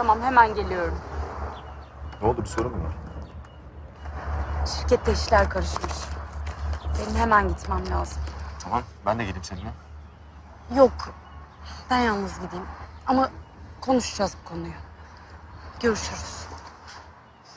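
A young woman answers calmly nearby.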